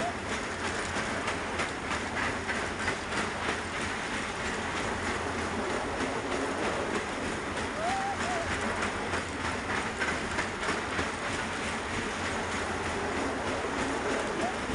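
A fairground ride rumbles and clatters as it spins.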